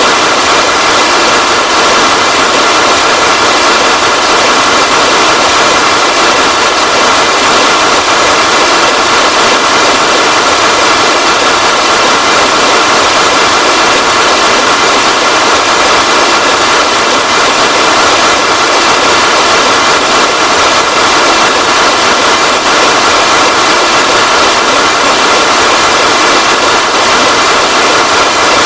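Rocket engines roar steadily.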